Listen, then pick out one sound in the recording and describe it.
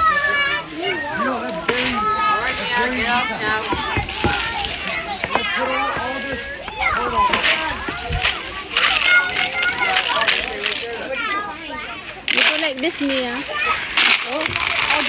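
Young children chatter and squeal nearby.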